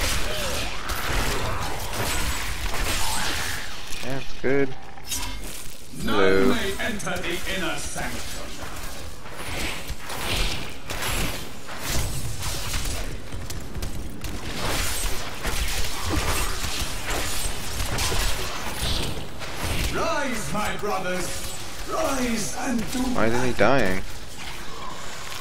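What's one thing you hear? Magic spells crackle and burst in a fast fight.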